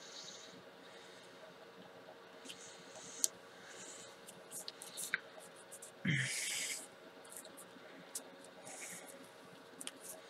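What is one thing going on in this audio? Paper rustles and scrapes softly as hands press and slide a card.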